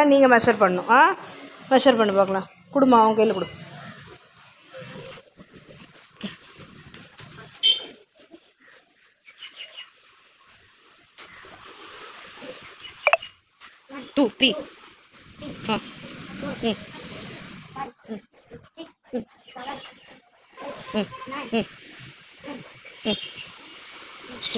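Young children talk and call out close by.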